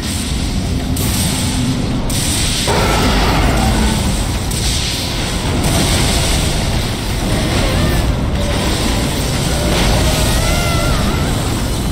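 Lightning crackles and bursts in loud blasts.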